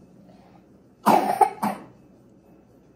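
A young girl coughs.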